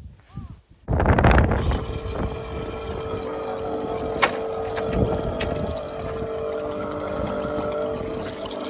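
A pressure washer motor starts suddenly and hums steadily.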